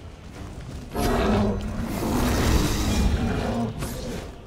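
Magic blasts whoosh and crackle in a fight.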